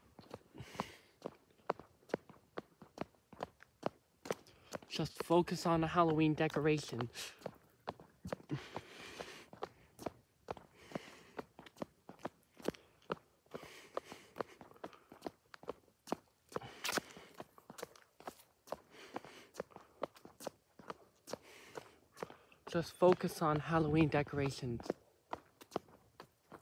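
Footsteps tap steadily on a concrete pavement.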